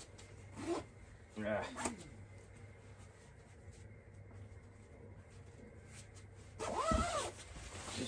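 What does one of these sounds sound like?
Fabric rustles as a man handles a padded bag.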